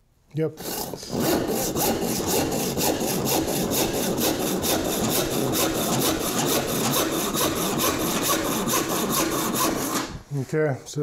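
A hand saw cuts through wood with quick, even strokes.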